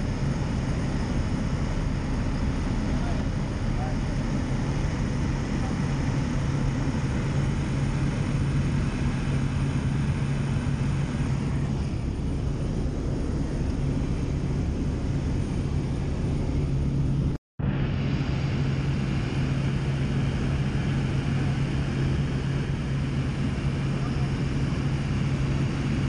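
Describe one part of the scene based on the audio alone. A light single-engine propeller plane drones, heard from inside the cabin.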